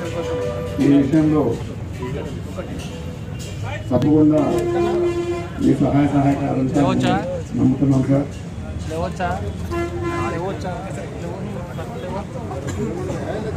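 A crowd of men chatter and call out nearby.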